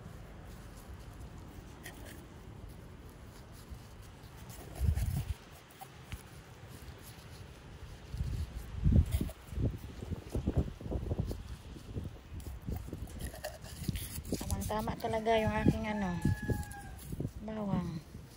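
A hand rustles and crumbles loose soil.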